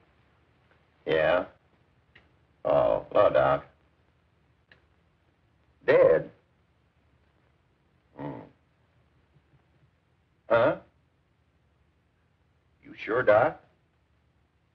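An elderly man speaks into a telephone in short phrases with long pauses.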